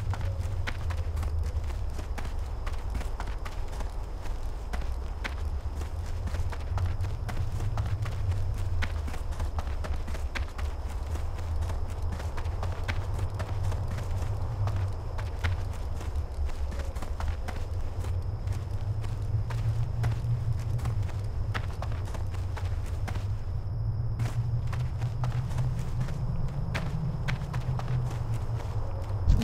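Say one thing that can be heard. Footsteps crunch steadily over snow.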